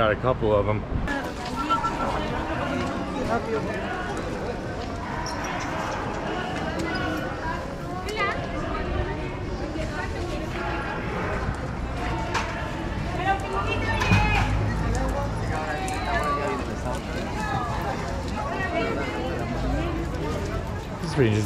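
A crowd of shoppers chatters in the background outdoors.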